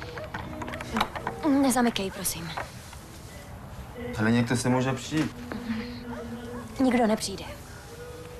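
A woman speaks with strong emotion close by.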